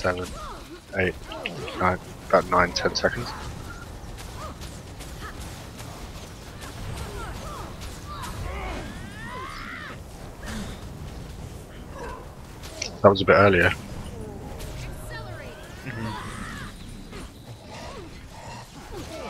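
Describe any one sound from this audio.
Fiery spell blasts whoosh and crackle in quick bursts.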